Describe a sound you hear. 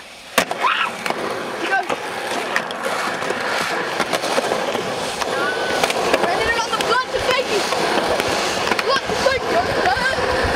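Skateboard wheels roll and rumble on pavement.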